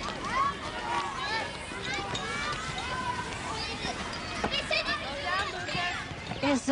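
Children shout and chatter excitedly outdoors nearby.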